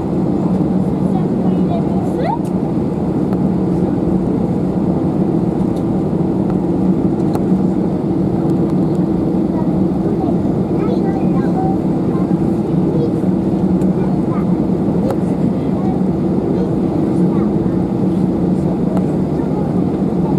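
An airliner's wheels rumble over the runway.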